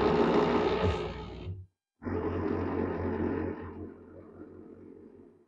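A blender whirs loudly, blending a thick mixture.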